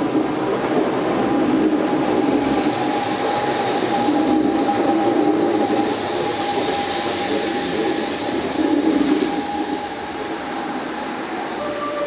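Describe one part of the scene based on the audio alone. Train brakes squeal steadily as the train slows.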